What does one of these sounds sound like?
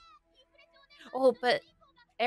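A young woman exclaims loudly, close to a microphone.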